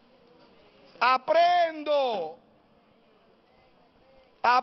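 A man preaches loudly and passionately into a microphone.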